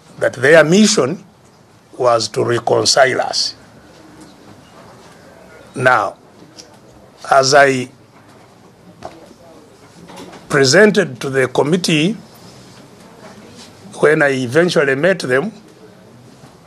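An elderly man speaks emphatically in short bursts, with pauses between them.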